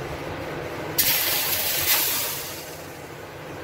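Thick cream slides from a steel bowl into a steel wok.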